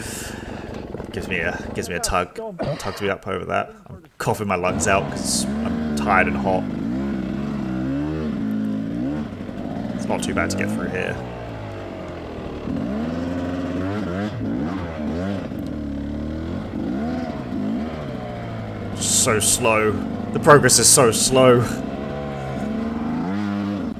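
A dirt bike engine idles and revs up and down close by.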